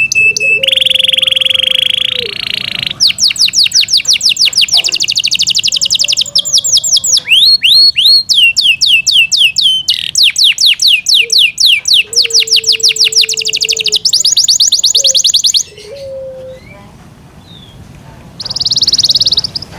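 A canary sings close by in rapid trills and chirps.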